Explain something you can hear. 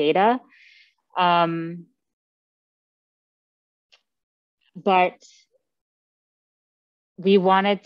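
A woman speaks calmly into a microphone in short phrases with pauses.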